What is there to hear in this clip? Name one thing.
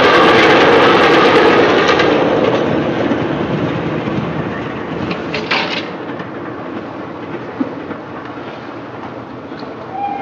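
Steam hisses from a locomotive.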